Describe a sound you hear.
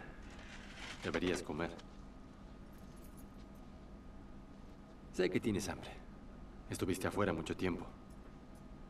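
A man speaks quietly and calmly, in short phrases.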